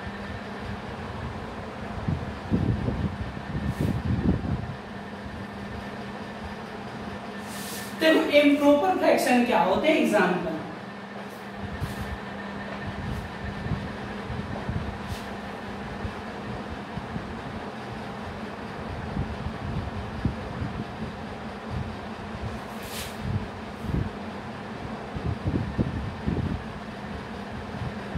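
A marker scrapes and taps on a whiteboard.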